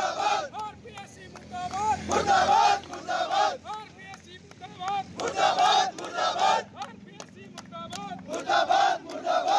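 A man leads the chant, shouting in short bursts.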